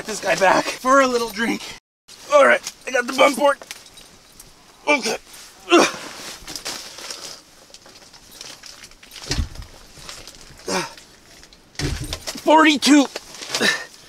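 A man talks excitedly up close.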